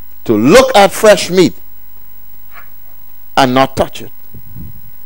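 A middle-aged man speaks with emphasis through a microphone.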